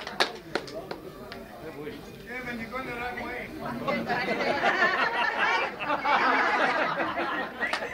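Men and women chatter in the background.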